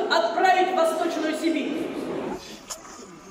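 A woman speaks into microphones.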